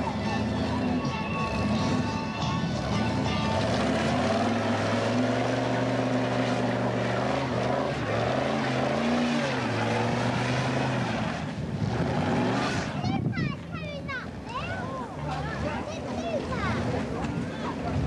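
Truck tyres screech while spinning on the road.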